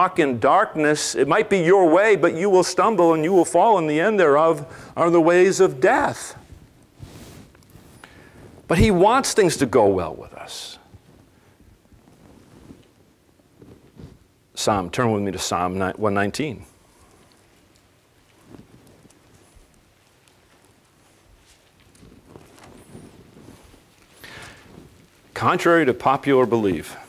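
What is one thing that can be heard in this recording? A middle-aged man speaks calmly through a microphone, with long pauses, in a room with a slight echo.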